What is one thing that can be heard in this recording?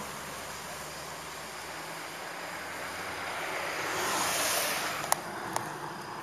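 A car engine hums as a car pulls away and fades.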